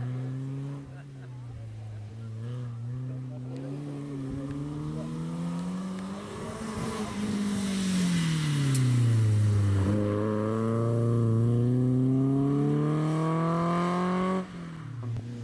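A rally car engine revs hard, rising and falling in pitch as the car speeds past.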